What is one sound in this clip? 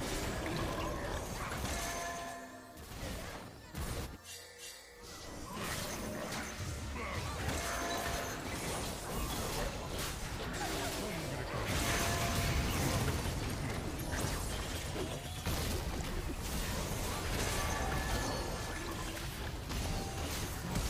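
Game sound effects of spells and blasts crackle and whoosh.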